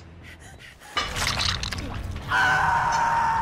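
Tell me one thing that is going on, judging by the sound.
A young woman screams in pain.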